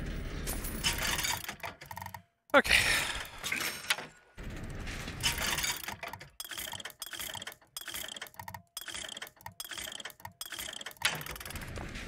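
A vending machine menu clicks and chimes with each selection.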